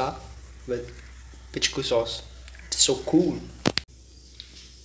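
A young man talks close to the microphone.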